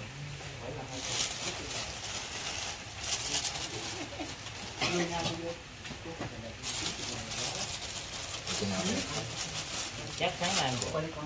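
A plastic bag rustles and crinkles as lettuce is packed into it.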